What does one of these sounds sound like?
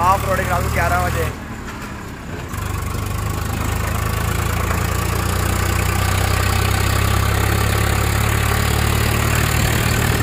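Tyres rumble and crunch over a rough dirt road.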